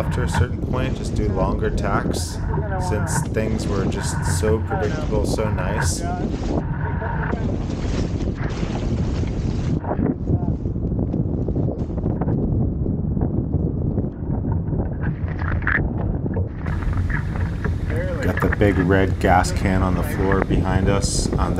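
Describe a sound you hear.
A man talks with animation close by, over the wind.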